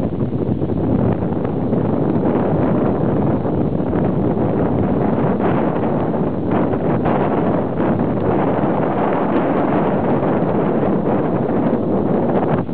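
A wooden windlass creaks and knocks as it turns.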